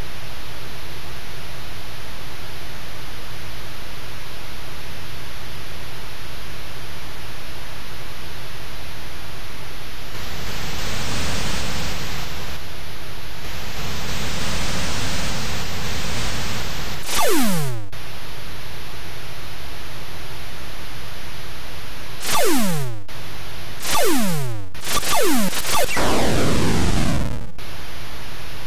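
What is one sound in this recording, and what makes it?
A spaceship engine hisses steadily.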